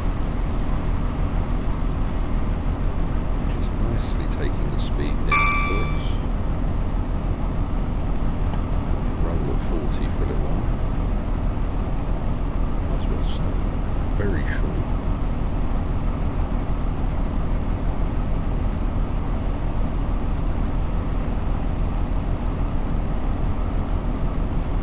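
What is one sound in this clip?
A train's engine hums steadily as it rolls along the tracks.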